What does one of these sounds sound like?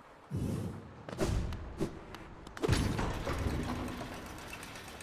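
Heavy metal clanks and thuds as a lift starts.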